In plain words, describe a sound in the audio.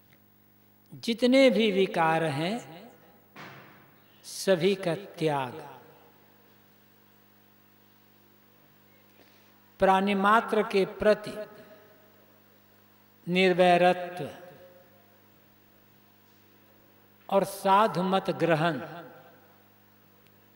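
An elderly man speaks slowly and calmly into a microphone, in short phrases with long pauses.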